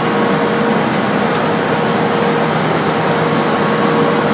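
A conveyor clatters as it carries leaves upward.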